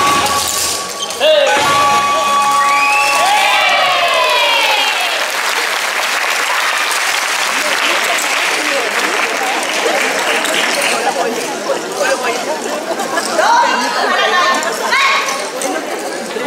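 A group of elderly women shout in chorus.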